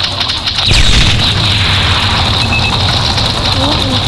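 A grenade explodes with a loud, rumbling blast.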